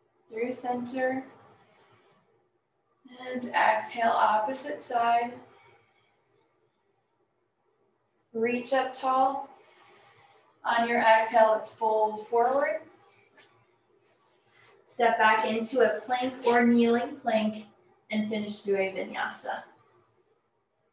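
A woman speaks calmly and clearly, giving instructions in short phrases.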